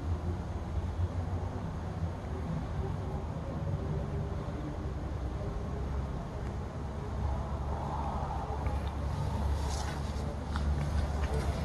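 Honeybees buzz around an open hive.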